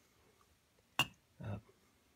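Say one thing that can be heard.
Small metal parts click and clink together.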